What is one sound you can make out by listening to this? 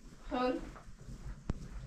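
A small child squeals up close.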